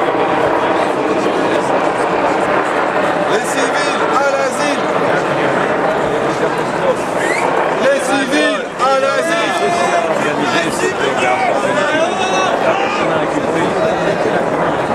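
A large crowd murmurs and talks outdoors.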